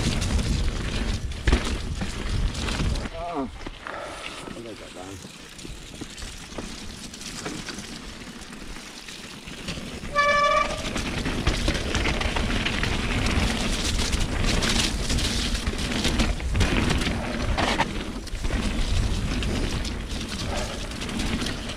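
A bicycle chain and frame rattle over bumps.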